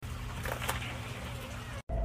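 A door lock keypad beeps as a button is pressed.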